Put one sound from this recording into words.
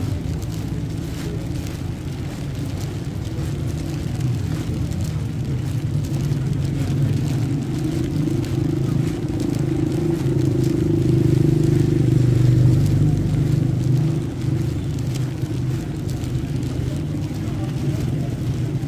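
Rain patters steadily on umbrellas and wet pavement.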